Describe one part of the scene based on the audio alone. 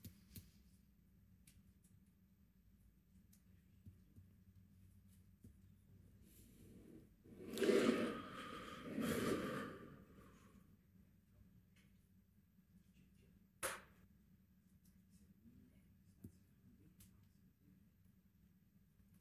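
Small items clink and knock on a counter.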